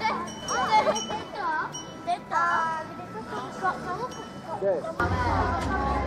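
Young children chatter and laugh close by.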